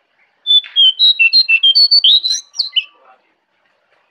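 A small bird sings loud, quick, chirping notes close by.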